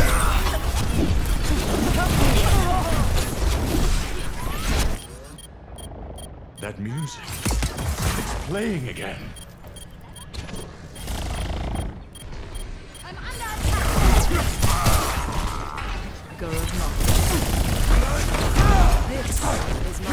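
Gunfire and energy blasts crackle in a fast game battle.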